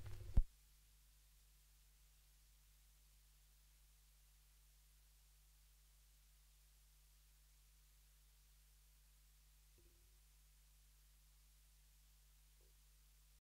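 A record player hums low and steady.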